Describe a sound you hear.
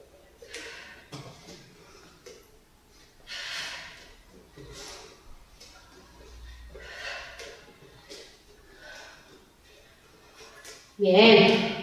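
A woman exhales sharply in rhythm with her exercise.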